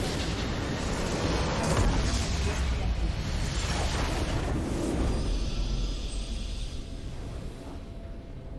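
A huge explosion roars and rumbles, then fades.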